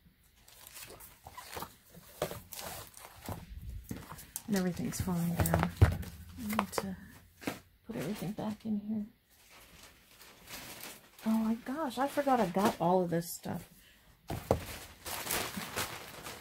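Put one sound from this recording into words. Books and glossy covers rustle and slide as they are handled.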